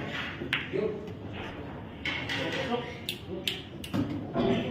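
Billiard balls clack against each other.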